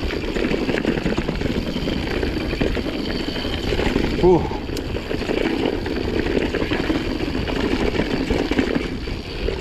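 Bicycle tyres rumble and crunch over a rough dirt trail.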